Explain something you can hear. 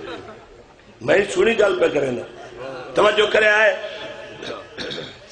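A man speaks loudly and passionately into a microphone, heard through a loudspeaker with echo.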